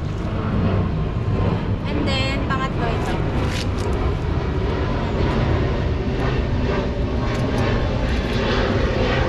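Pruning shears snip through plant roots with short, sharp clicks.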